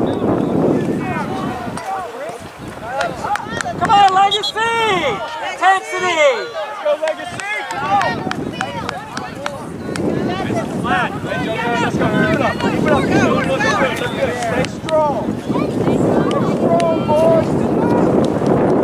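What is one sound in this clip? Young players shout and call out to each other on an open field.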